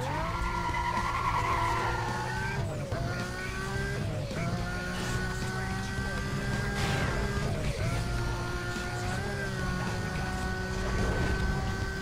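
A powerful racing car engine roars, revving up and dropping briefly with each gear change.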